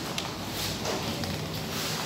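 Shoes tap on a hard tiled floor.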